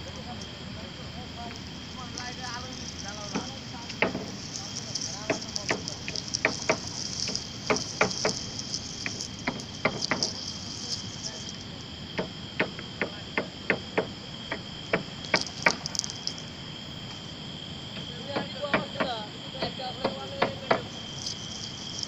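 Grass blades rustle and brush close by.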